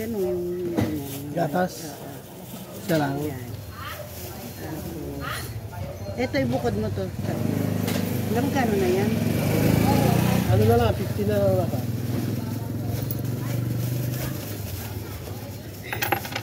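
A plastic bag rustles in someone's hands.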